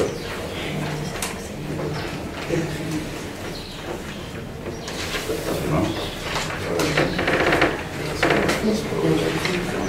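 A man speaks calmly to a small group.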